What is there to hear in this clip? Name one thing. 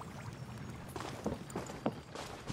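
Footsteps patter quickly across wooden boards.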